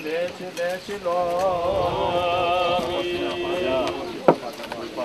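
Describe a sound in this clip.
Several voices sing a slow, drawn-out chant outdoors.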